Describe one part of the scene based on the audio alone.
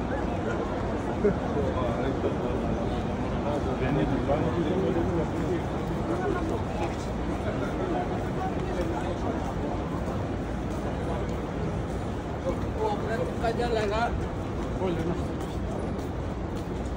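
A large crowd murmurs with many voices outdoors.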